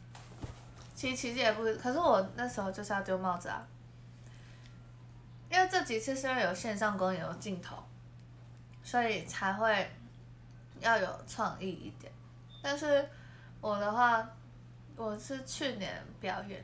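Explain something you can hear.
A young woman talks animatedly close to a microphone.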